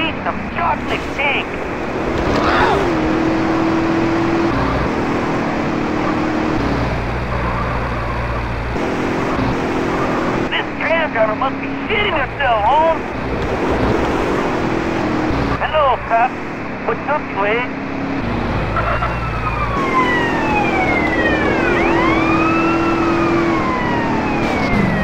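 A car engine hums and revs steadily as the car drives.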